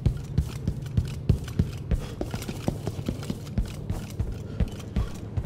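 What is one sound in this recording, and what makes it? Footsteps thud quickly and steadily across a wooden floor.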